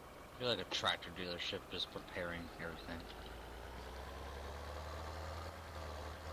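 A tractor engine hums steadily as it drives.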